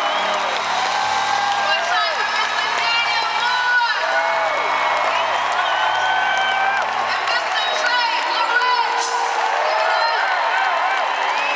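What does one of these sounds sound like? A large crowd cheers and screams loudly in a big echoing arena.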